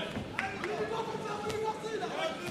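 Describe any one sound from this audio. Gloved punches thud against a boxer's body.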